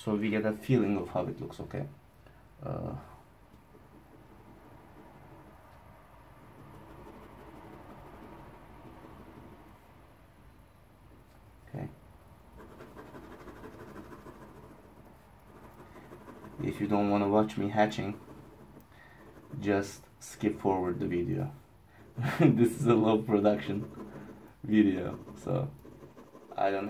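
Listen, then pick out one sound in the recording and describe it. A pencil scratches and rasps across paper.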